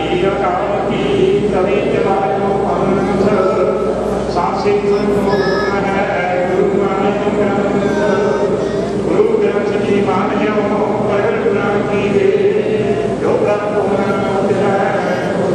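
A large crowd of men and women recite a prayer together in unison in an echoing hall.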